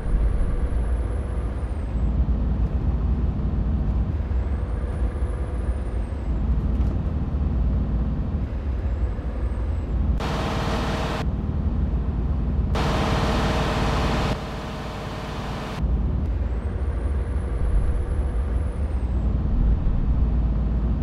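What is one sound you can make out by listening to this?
A truck engine rumbles steadily while driving on a road.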